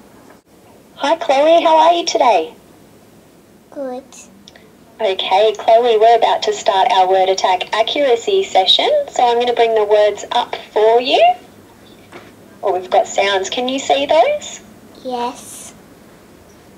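A young girl reads words aloud, close by.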